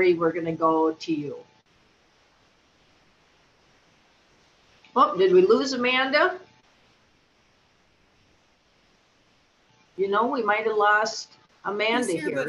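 A middle-aged woman speaks calmly through an online call, in short bursts with pauses.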